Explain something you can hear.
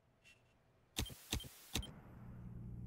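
Electronic static crackles in short bursts.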